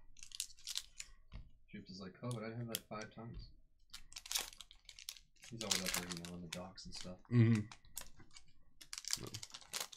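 A foil wrapper crinkles and tears in someone's hands.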